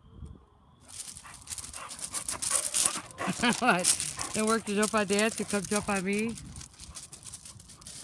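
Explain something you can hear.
A dog's paws crunch on gravel.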